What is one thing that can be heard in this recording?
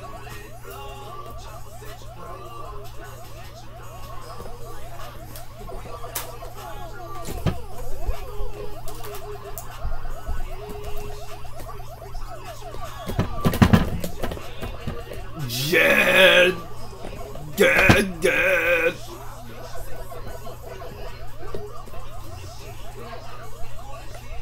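Arcade game music and chomping sound effects play from a television speaker.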